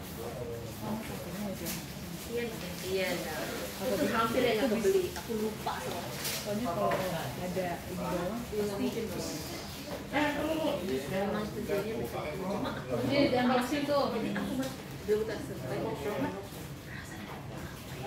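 Several young men chatter together nearby in a room.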